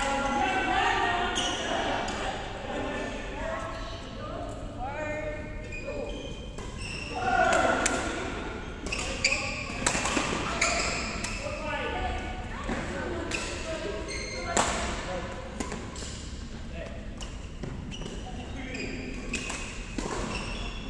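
Women and girls chatter and call out in the background.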